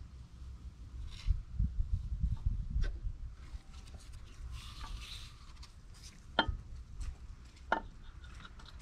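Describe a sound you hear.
Gloved hands rustle against metal.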